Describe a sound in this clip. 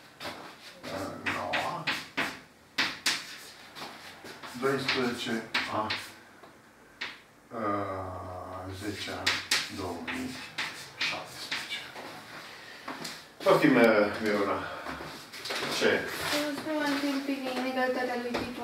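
An elderly man speaks calmly through a clip-on microphone, close by.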